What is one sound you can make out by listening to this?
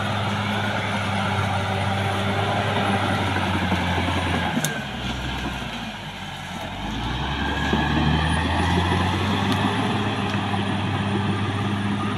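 Bulldozer tracks clank and squeak as the machine crawls over dirt.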